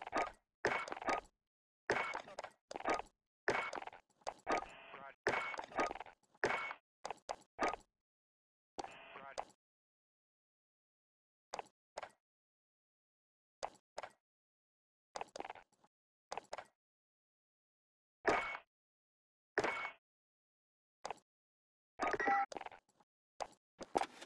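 Short electronic menu clicks tick now and then.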